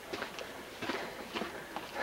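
Footsteps tread down stone steps.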